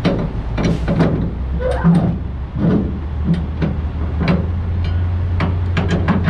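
A metal bar knocks against a trailer's tyre.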